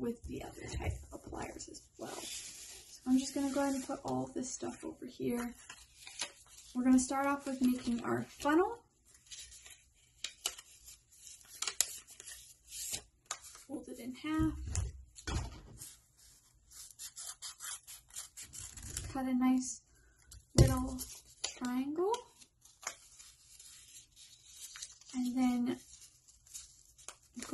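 Paper rustles and crinkles as it is handled and folded.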